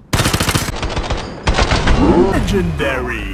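A rifle fires rapid, loud bursts of shots.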